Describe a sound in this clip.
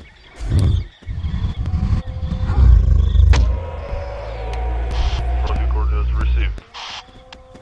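A large dinosaur roars with a deep rumble.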